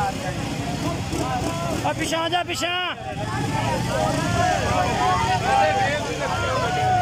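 A large crowd of men shouts and cheers outdoors.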